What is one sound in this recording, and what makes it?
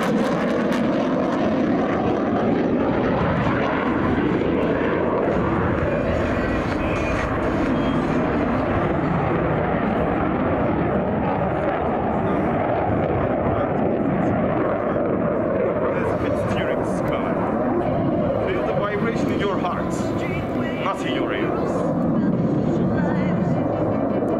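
A jet fighter roars loudly overhead, its engine rumbling steadily.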